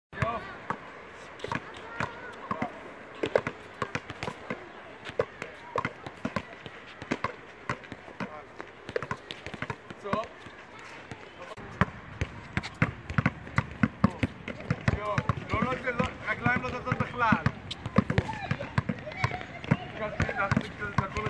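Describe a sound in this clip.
Basketballs bounce repeatedly on a hard outdoor court.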